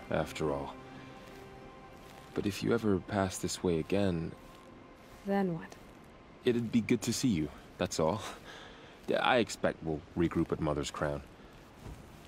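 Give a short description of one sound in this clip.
A young man speaks calmly and warmly.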